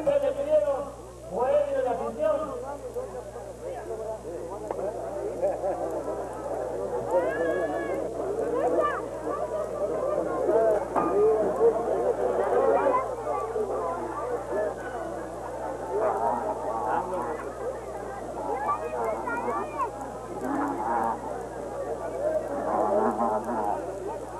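A crowd of men and women chatters and shouts loudly.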